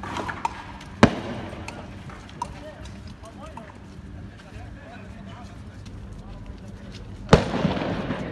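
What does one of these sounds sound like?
Loud, sharp bangs go off outdoors and echo.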